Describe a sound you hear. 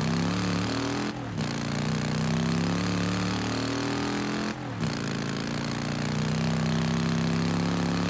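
A motorcycle engine hums steadily, dropping briefly as the rider shifts gears.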